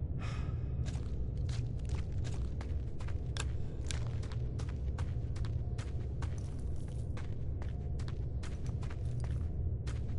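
Footsteps tap and scrape on rock.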